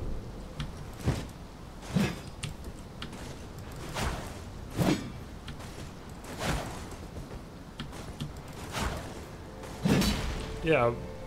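A heavy weapon swings and strikes with sharp whooshes and thuds.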